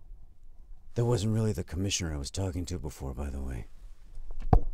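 A young man talks quietly in a hushed voice.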